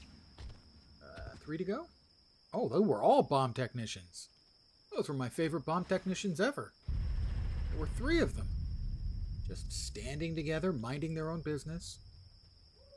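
An older man talks calmly and close to a microphone, in short bursts.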